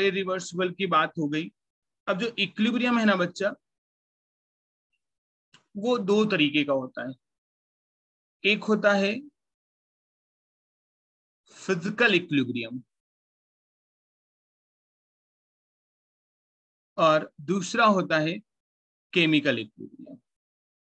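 A young man speaks calmly into a close microphone in short bursts with pauses.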